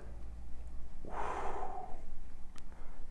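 A man blows out a long, heavy breath close to a microphone.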